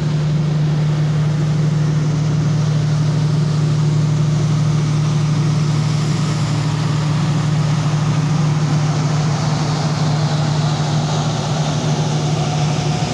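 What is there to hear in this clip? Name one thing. An electric train rolls past close by with a steady low hum.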